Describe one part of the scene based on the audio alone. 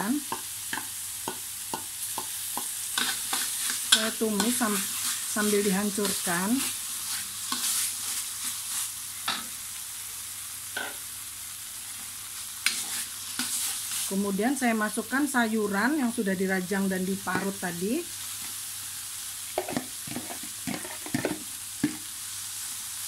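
A metal spatula scrapes and taps against a wok.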